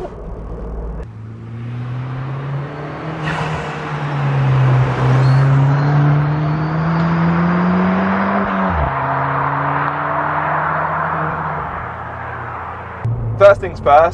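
A car engine revs loudly as the car approaches and speeds past.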